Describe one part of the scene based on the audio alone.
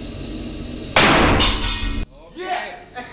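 A shotgun fires a single loud blast.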